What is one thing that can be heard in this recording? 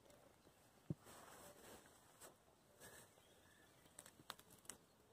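Dry hay rustles as puppies squirm in it.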